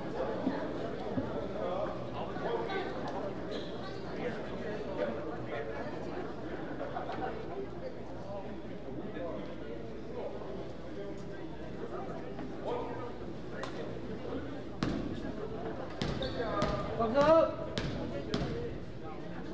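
Voices of young players and spectators chatter in a large echoing gym.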